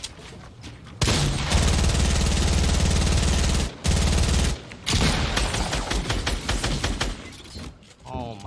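Loud gunfire and explosions rattle from a video game.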